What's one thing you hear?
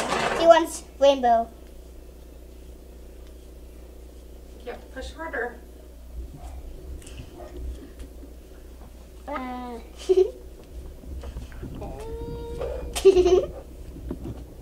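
A little girl squeals and giggles.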